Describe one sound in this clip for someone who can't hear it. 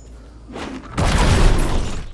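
A magic blast crackles and booms.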